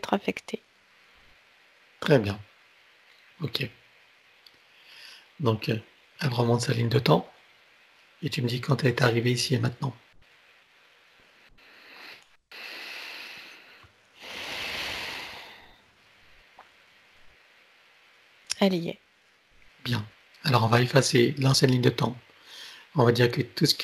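An older man speaks calmly and slowly through an online call.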